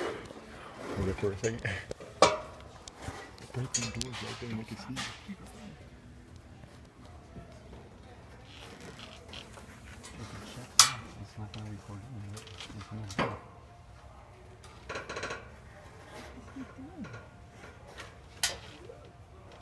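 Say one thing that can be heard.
Knocks and clatters sound sharply now and then on a metal shelf.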